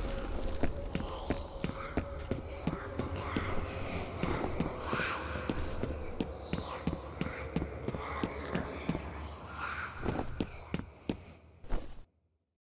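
Footsteps tread steadily on a hard floor in a large echoing hall.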